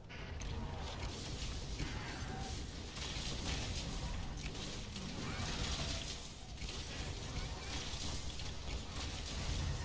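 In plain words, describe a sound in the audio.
Fiery explosions burst and roar.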